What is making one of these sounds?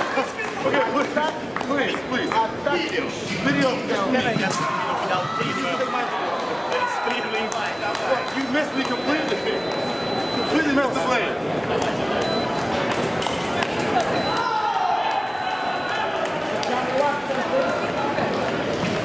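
A man speaks in a large echoing hall.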